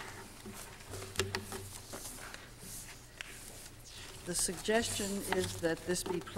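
Paper rustles.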